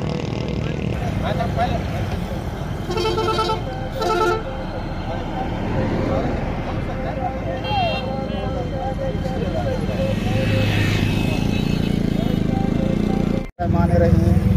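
Several men talk with each other outdoors.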